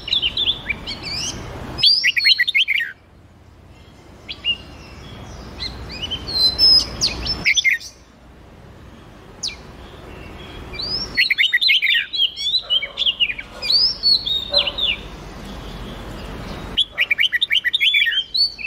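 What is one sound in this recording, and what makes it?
Songbirds sing in quick, bright chirps and whistling trills.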